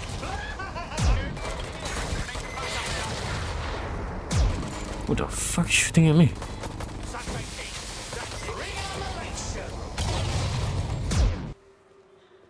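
Explosions boom with heavy thuds.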